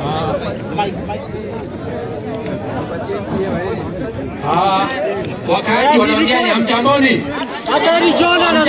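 A crowd of men and women talk over each other close by, outdoors.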